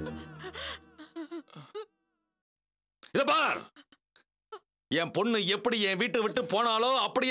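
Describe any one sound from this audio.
A middle-aged man speaks loudly and forcefully, close by.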